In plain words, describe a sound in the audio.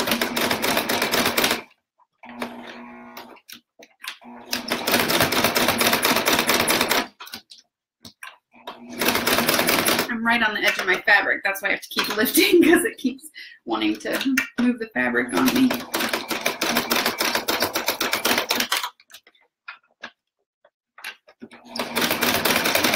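A sewing machine whirs and stitches rapidly in short bursts.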